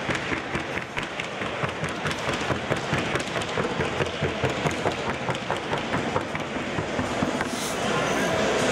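A horse's hooves beat quickly and evenly on a hard floor.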